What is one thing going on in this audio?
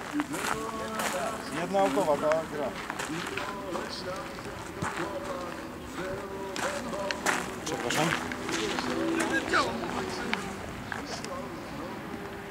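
Middle-aged and elderly men chat and call out to each other nearby, outdoors.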